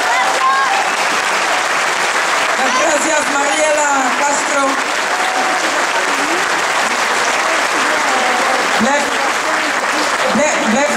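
A crowd chatters outdoors in a loud murmur.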